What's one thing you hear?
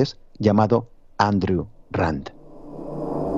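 An older man speaks with animation, close to a microphone.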